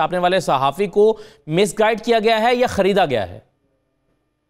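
A man speaks firmly and with emphasis into a microphone.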